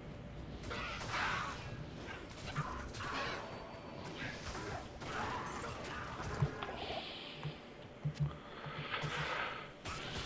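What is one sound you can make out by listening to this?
Blows land in a fast fight.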